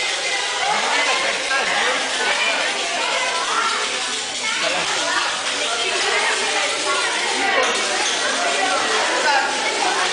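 Many children chatter loudly in an echoing hall.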